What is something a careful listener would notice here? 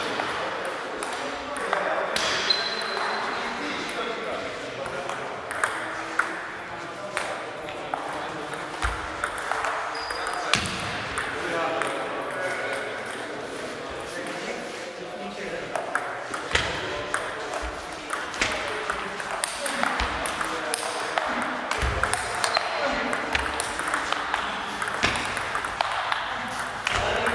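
A table tennis ball clicks back and forth on paddles and table in a large echoing hall.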